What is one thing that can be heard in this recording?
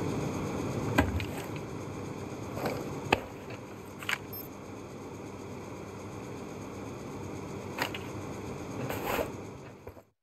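A metal door handle rattles and clicks.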